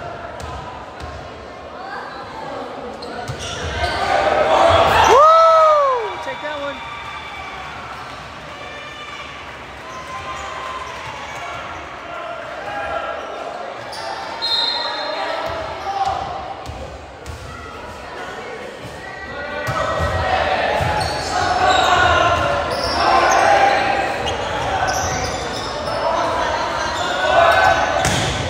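A crowd cheers and shouts in an echoing gym.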